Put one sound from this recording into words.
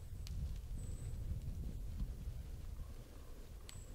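A deer steps softly through rustling undergrowth.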